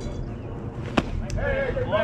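A metal bat strikes a ball with a sharp ping.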